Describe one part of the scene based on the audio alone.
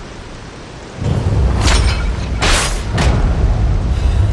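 A blade swishes and strikes hard several times.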